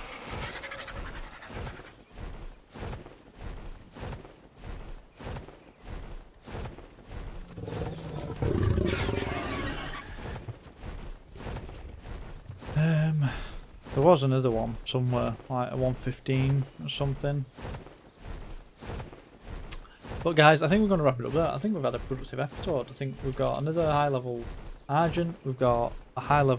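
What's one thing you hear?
A large bird's wings beat with a steady, rhythmic whoosh.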